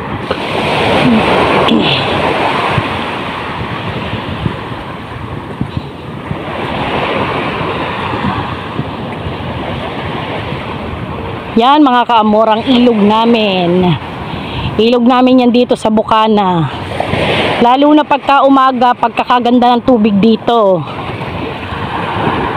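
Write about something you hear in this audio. Wind blows across an open beach.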